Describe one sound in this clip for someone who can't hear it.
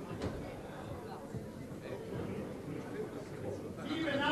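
A man speaks into a microphone, heard through loudspeakers in a large echoing hall.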